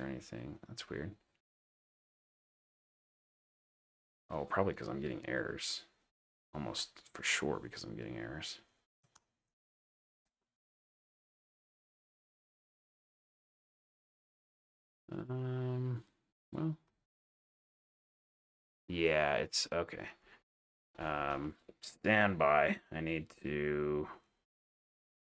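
A man talks calmly and closely into a microphone, with pauses.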